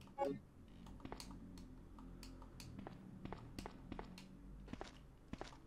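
Footsteps tap on a hard floor at an even pace.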